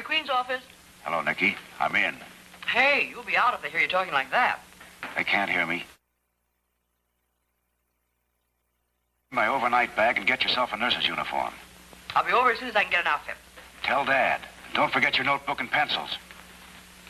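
A man speaks eagerly into a telephone.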